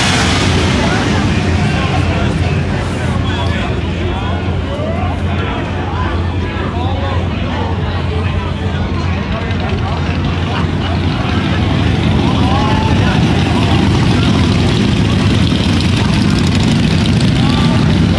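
Motorcycle engines rumble loudly as bikes ride past.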